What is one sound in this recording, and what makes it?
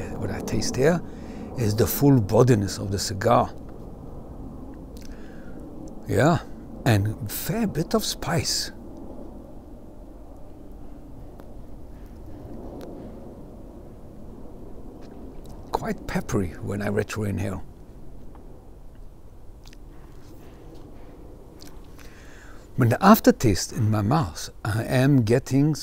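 A middle-aged man speaks calmly and close up into a microphone, outdoors.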